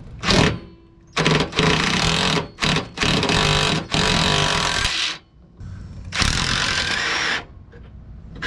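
A cordless impact driver whirs and rattles in bursts.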